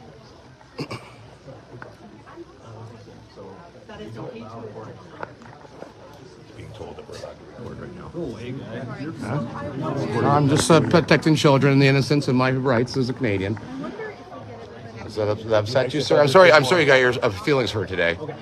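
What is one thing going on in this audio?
A man talks loudly and excitedly close to a phone microphone.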